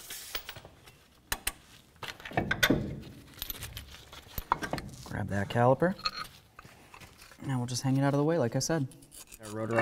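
Metal parts clink and scrape as a brake caliper is removed by hand.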